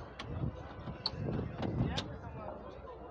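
A car door latch clicks.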